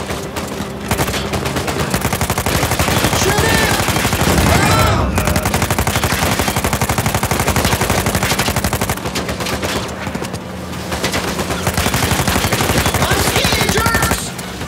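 Gunfire rattles rapidly.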